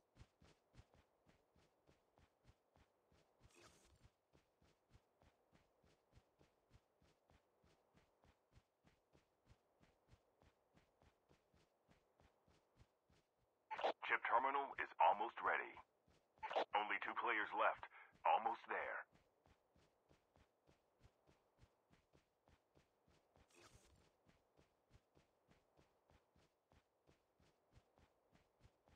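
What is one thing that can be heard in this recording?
Footsteps run quickly through dry grass.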